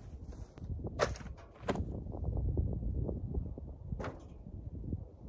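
Sharp pops burst several times.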